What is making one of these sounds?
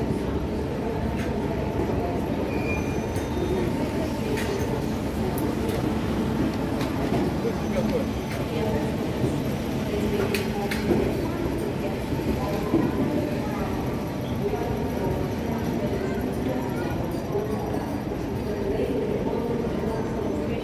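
Crowd chatter murmurs throughout a large echoing hall.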